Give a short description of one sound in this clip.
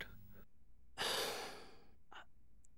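A man sighs heavily.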